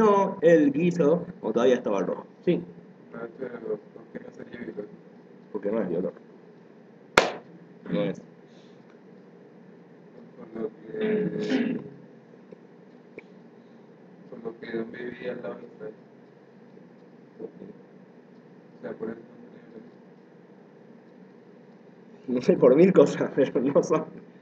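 A man speaks casually close to a microphone, in short bursts with pauses.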